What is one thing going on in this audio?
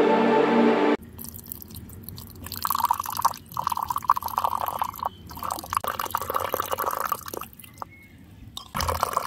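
Water pours from a pipe and splashes into a small pool.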